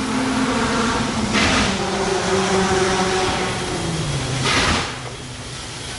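A steam locomotive chuffs and hisses loudly as it passes close by.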